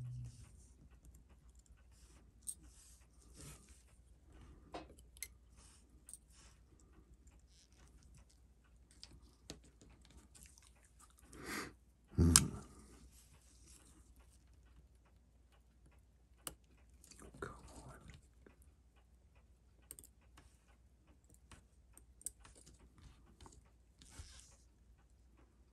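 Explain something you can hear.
Metal tweezers tick and click softly against a small watch movement.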